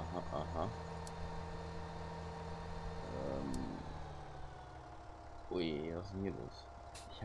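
A tractor engine hums steadily, then drops to a lower idle.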